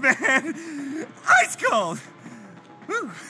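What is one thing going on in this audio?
A man laughs close by.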